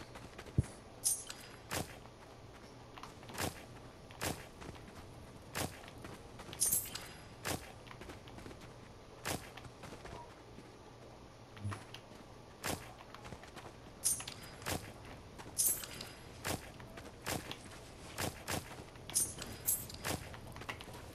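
Small chimes ring out as items are picked up.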